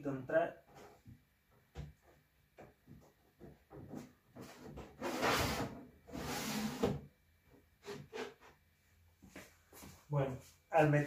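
Wooden boxes knock and clatter as they are moved.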